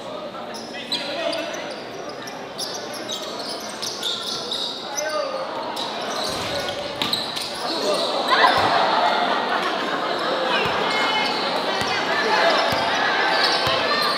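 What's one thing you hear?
A large crowd chatters and shouts in an echoing hall.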